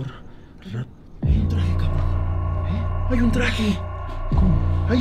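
A young man speaks excitedly up close.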